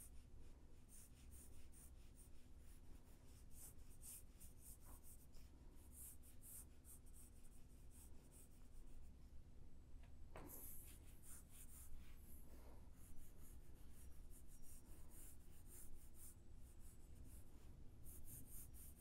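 A pencil scratches in short strokes across paper.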